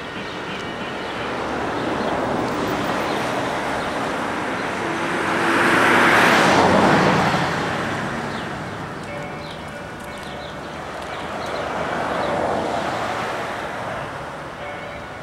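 Footsteps pad across concrete.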